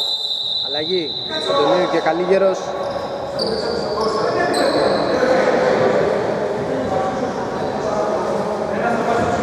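Sneakers squeak sharply on a floor in a large echoing hall.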